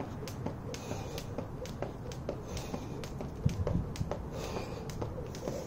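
Sneakers tap lightly on the ground with each jump.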